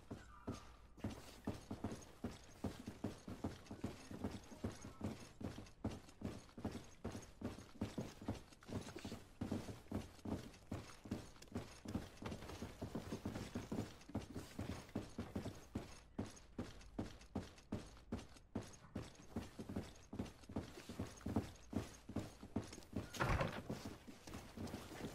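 Quick footsteps run steadily across a hollow wooden floor.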